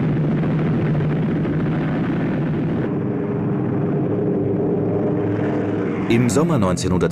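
Propeller engines drone loudly and steadily.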